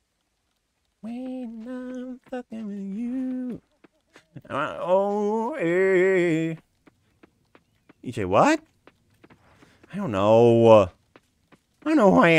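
A young man talks animatedly and close to a microphone.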